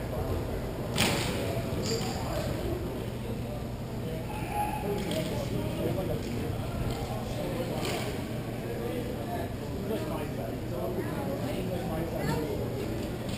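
Sticks clack against a ball and against each other.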